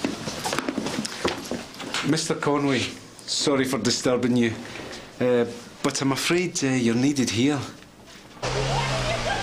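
A man speaks calmly on a phone, close by.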